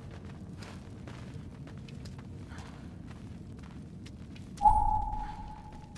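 Footsteps crunch on a rocky floor.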